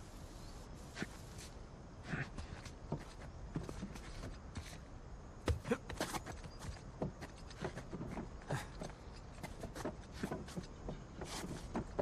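Hands grip and scrape on rough stone.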